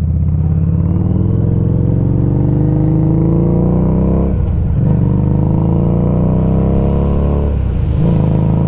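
A motorcycle engine rumbles loudly, rising in pitch as it speeds up and dropping briefly at each gear shift.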